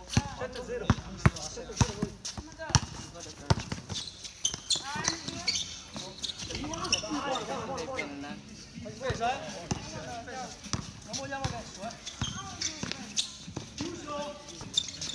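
Sneakers squeak on the court.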